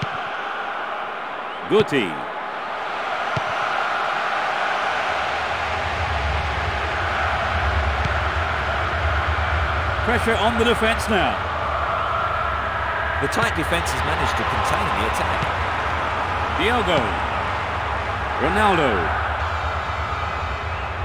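A large stadium crowd murmurs and roars steadily.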